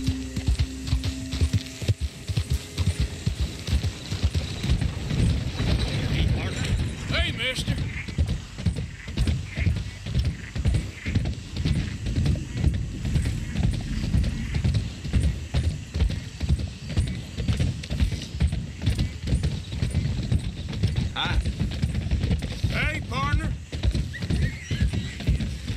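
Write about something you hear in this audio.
A horse's hooves pound steadily at a gallop.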